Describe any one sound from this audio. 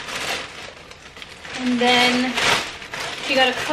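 Fabric rustles as clothes are handled.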